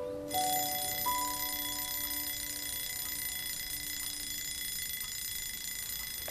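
A clock ticks steadily, once a second.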